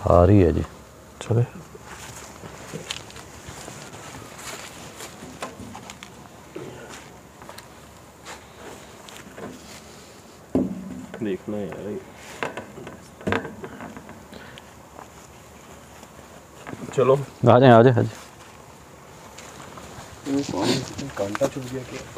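A young man talks in short bursts close by.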